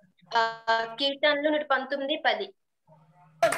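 A young girl speaks clearly over an online call.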